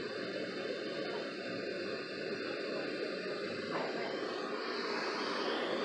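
A small radio plays a loud, steady hiss of static.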